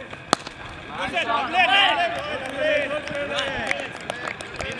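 Several men call out to each other with animation.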